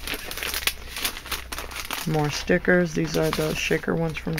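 Plastic packaging crinkles in a hand.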